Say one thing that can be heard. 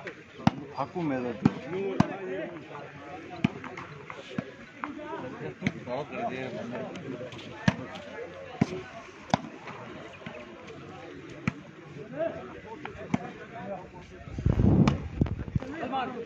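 Men shout and call out outdoors during a volleyball game.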